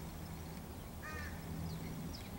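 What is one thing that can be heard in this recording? A raven gives a short call close by.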